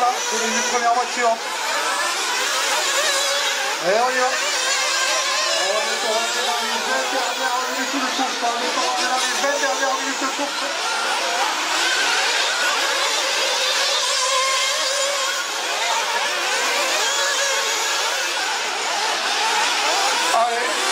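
Small model car engines whine and buzz at high pitch as the cars race around.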